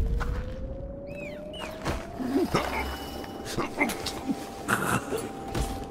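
A man grunts and struggles while being choked.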